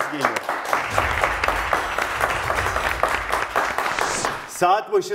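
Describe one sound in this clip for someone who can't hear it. A studio audience claps and applauds.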